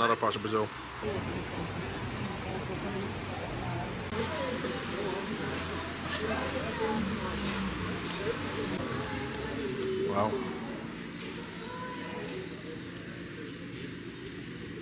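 A crowd of men and women chatters in the background.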